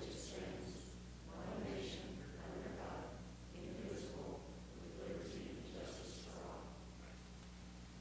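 A crowd of men and women recite together in a large echoing hall.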